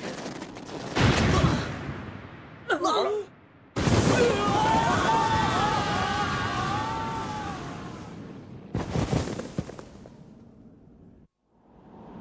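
A strong wind howls.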